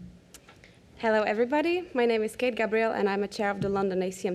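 A woman speaks calmly over a microphone.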